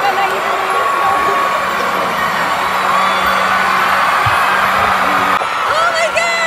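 A large crowd cheers and screams in a big echoing arena.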